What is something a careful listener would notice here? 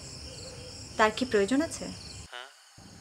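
A young woman speaks quietly on a phone.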